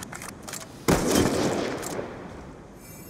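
A rifle fires a single loud shot that echoes away.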